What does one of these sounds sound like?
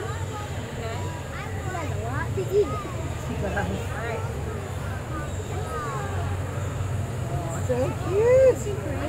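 An otter chirps and squeaks in short high calls.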